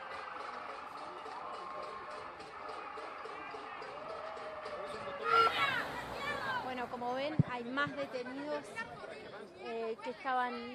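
A crowd shouts and chants outdoors.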